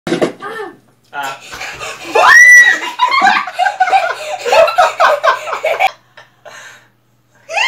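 A teenage boy talks and laughs with animation close by.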